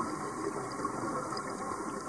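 Bubbles from a diver's breathing gurgle and rush upward underwater.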